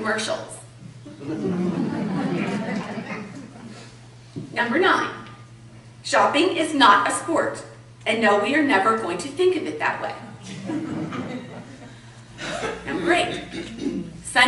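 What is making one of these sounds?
A middle-aged woman speaks calmly into a microphone in a reverberant room.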